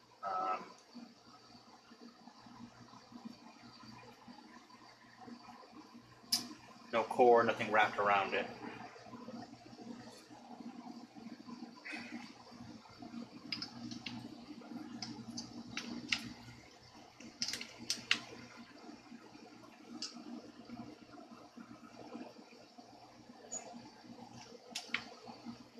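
Metal guitar strings click and tick softly as they are handled.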